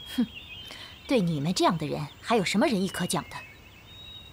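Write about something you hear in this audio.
A young woman speaks coldly and firmly, close by.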